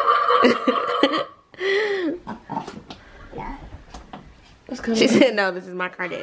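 A toy ride-on car plays loud electronic sounds and tunes.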